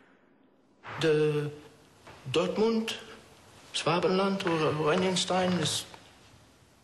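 A man speaks loudly and forcefully in an echoing room.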